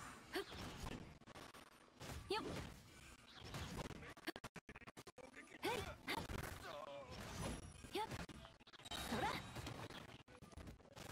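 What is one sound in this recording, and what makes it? A sword swings and slashes with sharp whooshes and impacts.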